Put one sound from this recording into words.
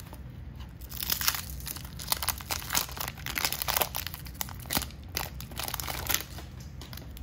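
Hands tear open a crinkling wax paper pack.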